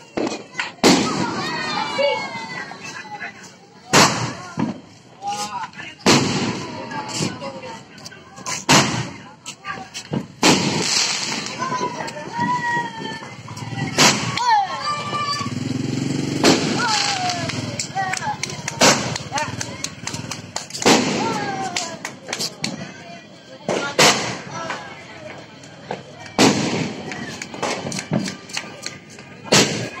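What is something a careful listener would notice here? Firework sparks crackle and whistle as they burst.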